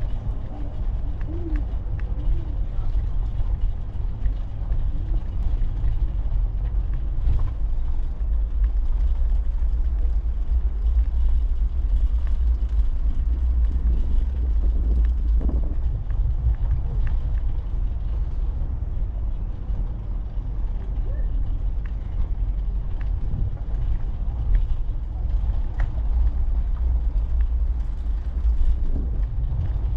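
Tyres rumble steadily over a brick street.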